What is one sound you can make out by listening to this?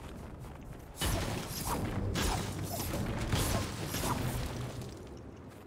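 A pickaxe strikes rock with sharp ringing hits.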